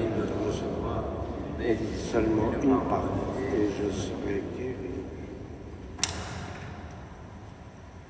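A man speaks slowly, his voice echoing through a large hall.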